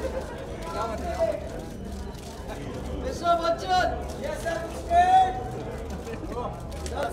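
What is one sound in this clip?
Adult men talk and call out nearby.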